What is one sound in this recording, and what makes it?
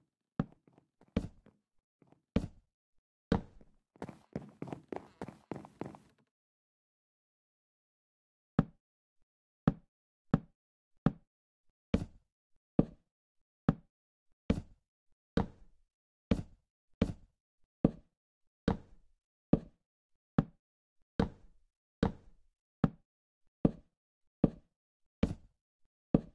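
Wooden blocks are placed one after another with short hollow knocks.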